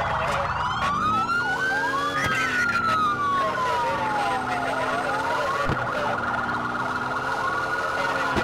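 A car engine revs and roars as the car speeds up.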